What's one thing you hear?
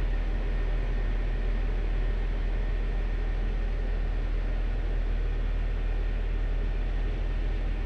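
A vehicle engine rumbles steadily close by.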